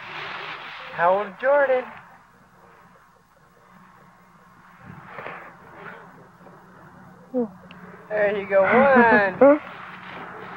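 A toddler squeals and babbles nearby.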